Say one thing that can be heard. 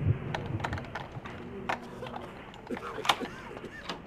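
A lock clicks and rattles as it is picked.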